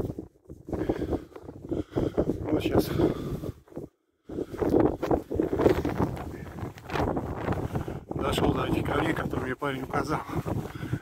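A man talks calmly, close up.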